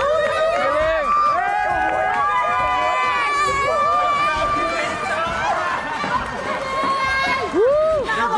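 Women laugh loudly.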